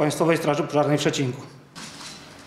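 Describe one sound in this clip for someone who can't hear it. A man speaks formally into microphones in a large hall.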